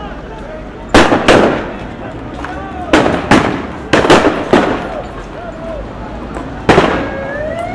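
Loud bangs of shots ring out several times, echoing outdoors.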